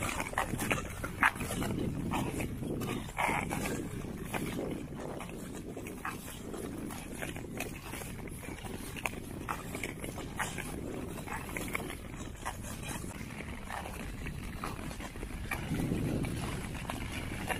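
Ice skates click sharply on the ice.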